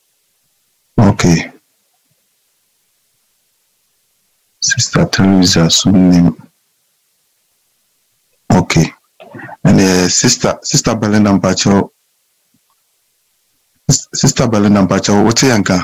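A man speaks with animation in short bursts through a microphone, with pauses between.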